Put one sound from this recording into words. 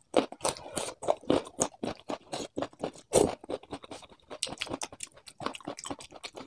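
Fingers squish and mix rice close to a microphone.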